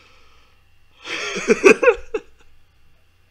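A young man laughs close to a microphone.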